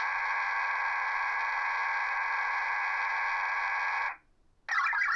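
A radio loudspeaker plays steady, shrill digital data tones.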